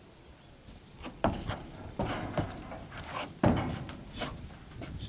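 Horse hooves thump and clatter on a hollow trailer floor.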